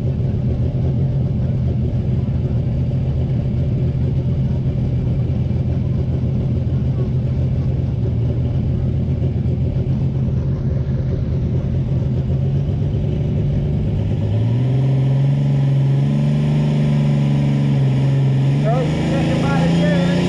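A tractor engine roars loudly close by, its pitch jumping higher partway through.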